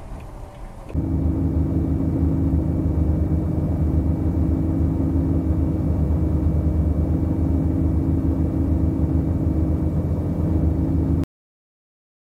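A heavy truck engine rumbles loudly and steadily.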